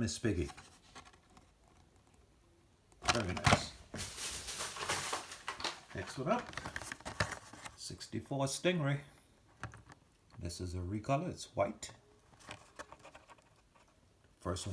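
Plastic packaging rustles and crinkles as it is handled.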